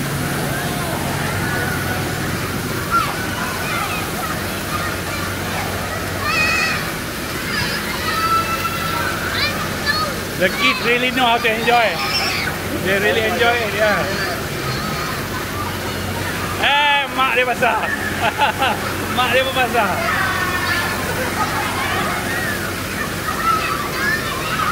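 Children shriek and shout playfully outdoors.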